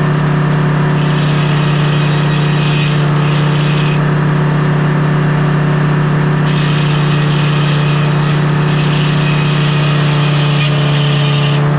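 A circular saw screams as it cuts through a log.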